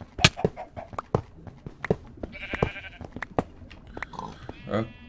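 A pickaxe chips rapidly at blocks with sharp clicks.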